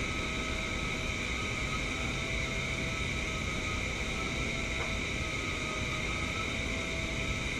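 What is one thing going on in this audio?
A spray gun hisses steadily with compressed air.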